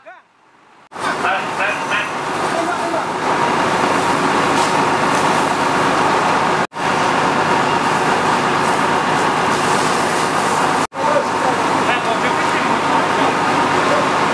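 A pressure hose sprays water in a loud, steady hiss.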